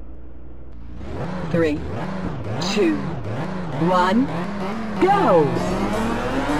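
Racing car engines rev loudly in bursts.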